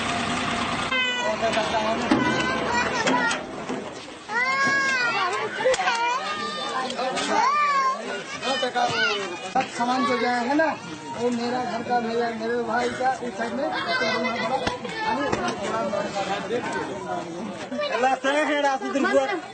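Several people talk loudly close by.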